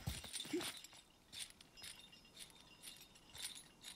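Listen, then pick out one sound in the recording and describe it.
A metal chain rattles and clinks.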